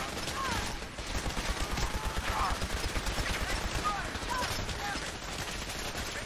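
A laser rifle fires with sharp zapping bursts.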